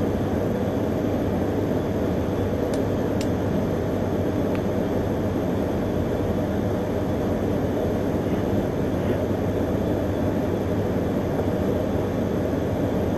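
A train rumbles steadily close by.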